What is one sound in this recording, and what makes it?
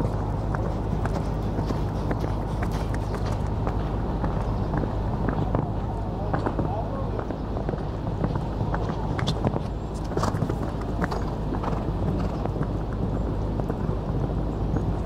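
Horse hooves thud on soft sand at a canter.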